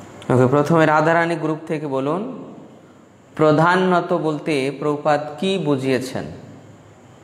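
A man chants in a steady, melodic voice close to a microphone.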